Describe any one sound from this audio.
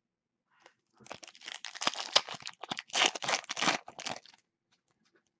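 A plastic wrapper crinkles and tears as hands open a pack.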